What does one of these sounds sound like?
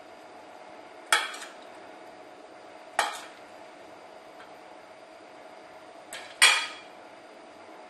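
A spoon clinks against a metal bowl.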